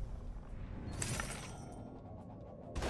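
An energy beam crackles and whooshes.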